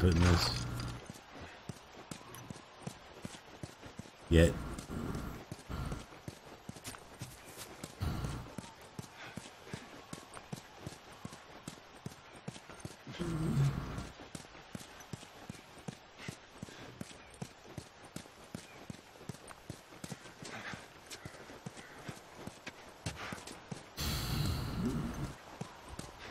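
Footsteps patter steadily on hard ground.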